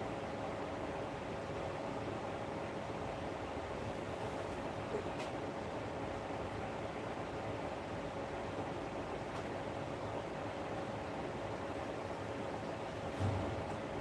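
An electric lamp hums steadily.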